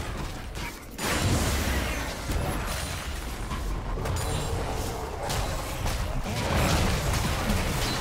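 Fantasy battle sound effects of spells and blows clash and whoosh.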